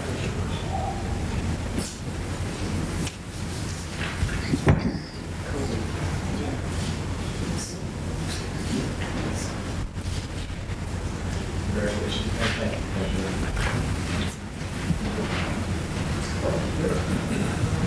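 Men and women murmur and talk quietly in a room.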